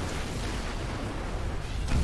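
A plasma blast bursts with a booming crackle.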